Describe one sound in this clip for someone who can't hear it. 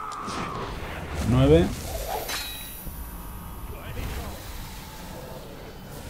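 Blades clash and strike in a short fight.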